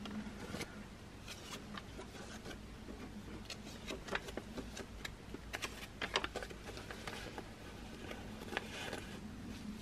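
Paper banknotes rustle and flick as they are counted by hand.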